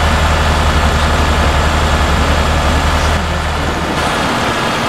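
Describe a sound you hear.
A truck engine drones with a low, steady hum.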